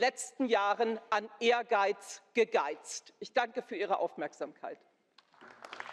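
A woman speaks firmly into a microphone in a large hall.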